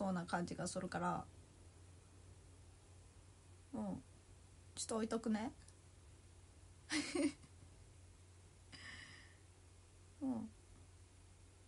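A young woman speaks close to the microphone in short, expressive bursts.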